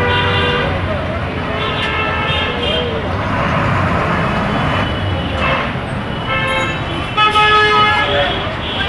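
Vehicle horns honk repeatedly.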